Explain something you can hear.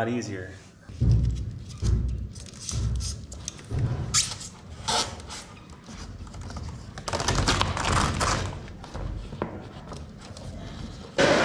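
Electrical wire rustles and scrapes against a wall.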